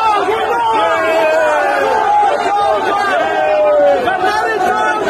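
A crowd of men shout and cry out loudly all around, close by.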